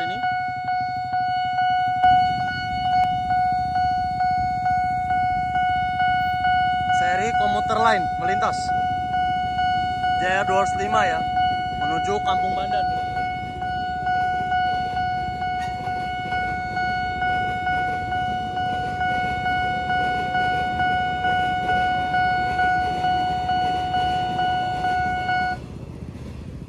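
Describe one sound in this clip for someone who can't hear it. A railway crossing bell rings steadily and rapidly, close by.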